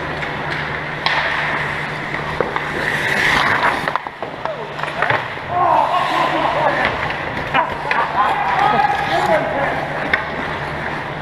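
Skate blades scrape and carve across the ice.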